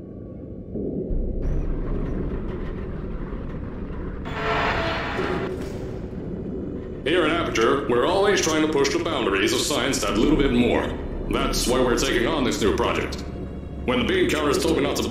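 A lift rumbles and rattles as it rises.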